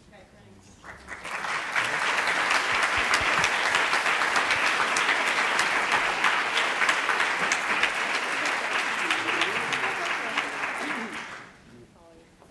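An audience applauds in a large room.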